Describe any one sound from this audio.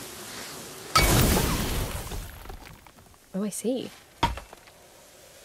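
Sparks crackle and burst with a whoosh.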